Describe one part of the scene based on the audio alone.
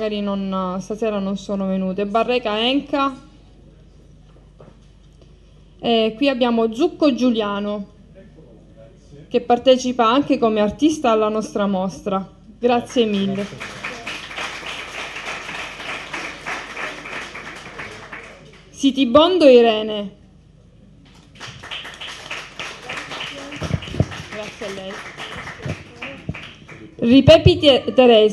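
A woman speaks into a microphone over loudspeakers, in bursts with pauses.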